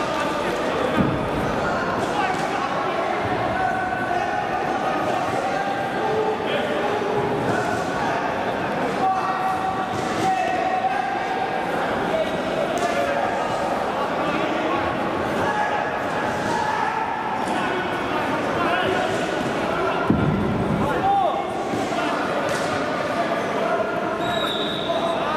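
Gloved punches thud against bodies.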